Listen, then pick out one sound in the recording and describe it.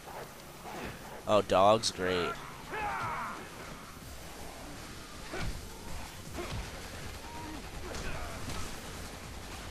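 Heavy blows thud against a body in a scuffle.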